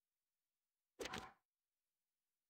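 A short menu chime sounds as a notice pops up.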